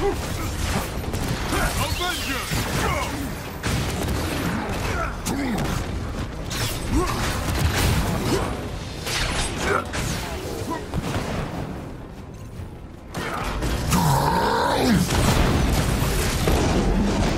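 Energy blasts fire with sharp zaps.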